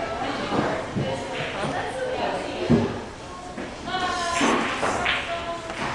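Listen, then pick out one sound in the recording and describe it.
Pool balls knock against each other.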